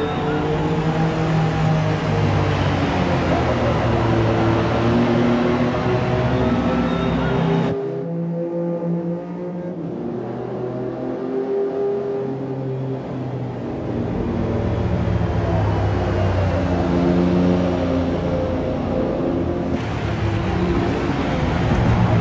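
Car engines roar and whine as racing cars speed along a track.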